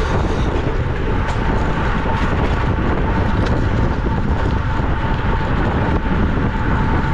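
Wind roars steadily across the microphone outdoors.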